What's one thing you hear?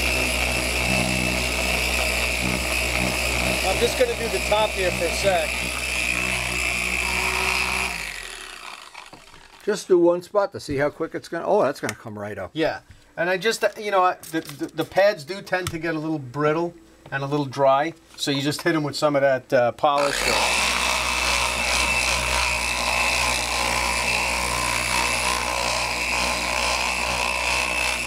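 A polishing machine whirs steadily.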